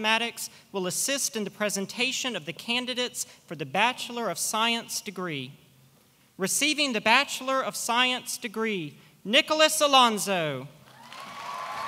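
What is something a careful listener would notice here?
A man speaks loudly through a microphone into an echoing hall, announcing.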